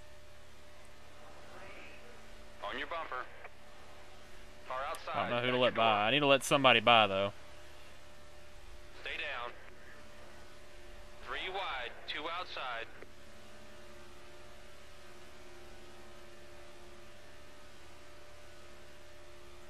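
A race car engine drones steadily at high speed.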